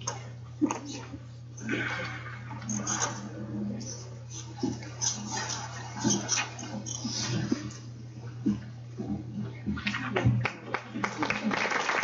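Several adults murmur and talk quietly in a large room.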